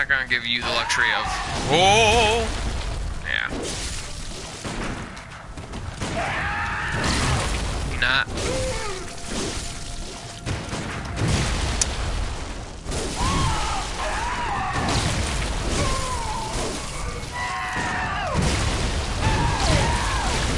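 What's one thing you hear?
A monster lets out loud, warbling shrieks and growls.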